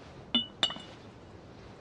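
A porcelain cup clinks softly on a tray.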